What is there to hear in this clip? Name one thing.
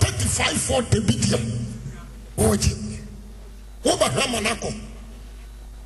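A man preaches forcefully into a microphone in a large echoing hall.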